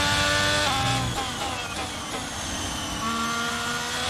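A racing car engine drops in pitch as the car brakes hard for a corner.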